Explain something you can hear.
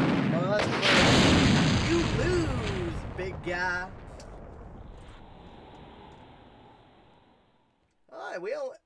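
A huge explosion roars and rumbles, then slowly fades.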